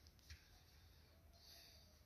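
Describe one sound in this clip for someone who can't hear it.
A brush strokes softly across canvas.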